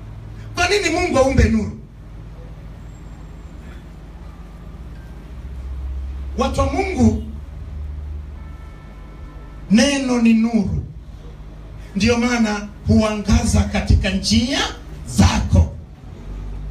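A man preaches loudly into a microphone in short bursts, heard through loudspeakers in an echoing room.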